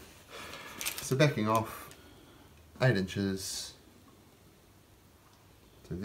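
A metal tape measure slides out and retracts.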